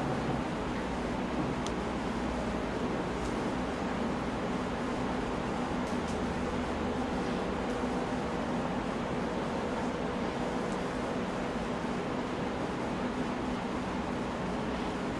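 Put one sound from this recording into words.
A man speaks calmly and steadily into a microphone, heard through a loudspeaker.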